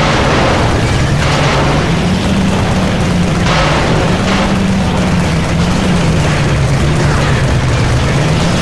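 An engine drones steadily as a vehicle drives over rough ground.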